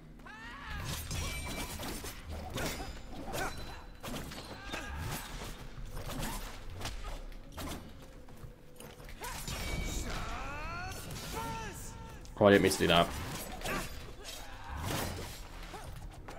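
Swords clash and slash in combat.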